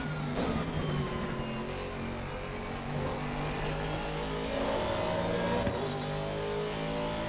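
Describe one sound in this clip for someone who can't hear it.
A racing car engine roars steadily and climbs in pitch as the car speeds up.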